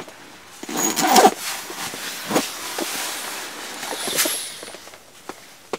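Bedding rustles close by as a person shifts about in bed.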